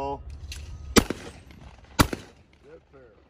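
A shotgun fires two loud blasts outdoors, each followed by a short echo.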